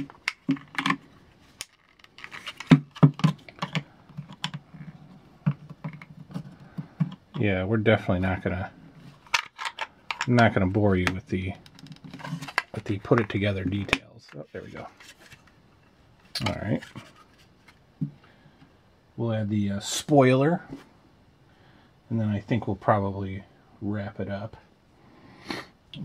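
Plastic parts click and snap as they are pressed together.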